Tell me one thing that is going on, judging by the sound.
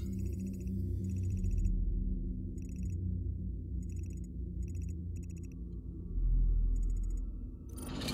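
Short electronic beeps chirp in quick pairs.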